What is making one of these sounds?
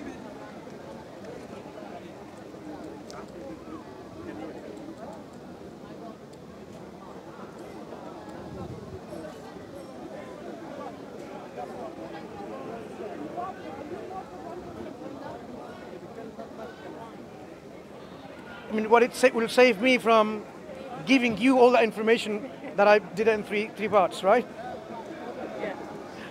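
People murmur and talk quietly nearby outdoors.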